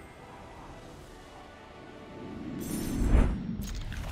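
A short triumphant fanfare swells up and ends with a bright crash.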